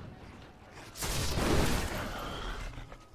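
A crackling bolt of lightning strikes with a loud crash.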